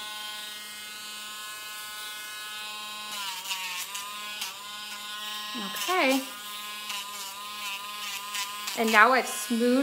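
An electric nail grinder whirs steadily, its pitch dipping as it presses on a dog's nails.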